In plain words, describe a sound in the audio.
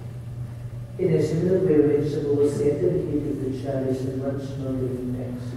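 A man sings a slow chant.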